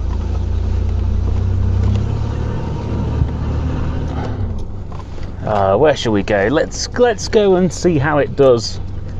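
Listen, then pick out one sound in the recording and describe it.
A car engine rumbles low and steadily, heard from inside the car.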